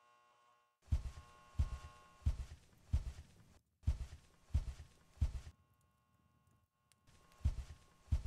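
Footsteps thud at an even pace.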